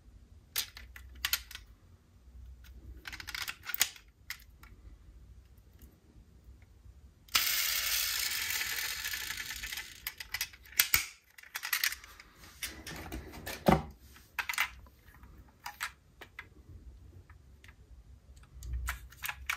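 Small plastic parts of a toy car click and tap as hands handle it.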